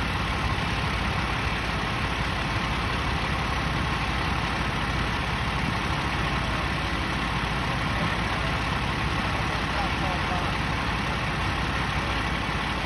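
A fire engine's motor idles nearby with a low, steady rumble.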